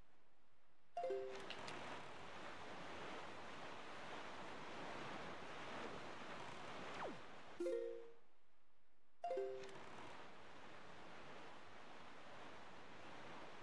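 Wind and waves rush steadily as a small sailboat cuts through the sea.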